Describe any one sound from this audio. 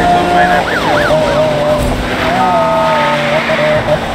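Tyres screech through a bend.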